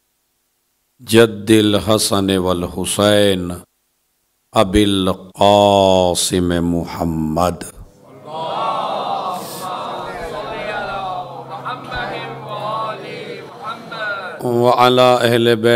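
A man speaks steadily into a microphone, with short pauses.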